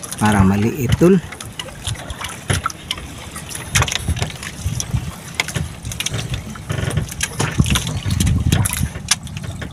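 Water splashes and laps against a wooden boat's hull.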